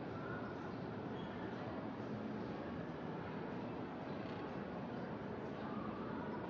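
Escalators hum steadily in a large echoing hall.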